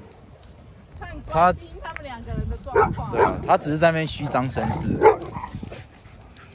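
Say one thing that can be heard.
A young woman talks to dogs in a high, lively voice close by.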